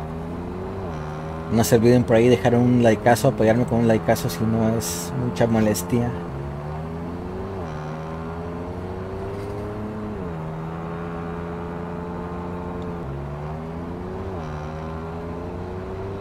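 A truck engine drones steadily, shifting gears as it climbs.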